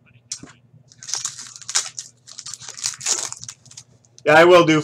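A plastic card pack crinkles and tears as it is opened.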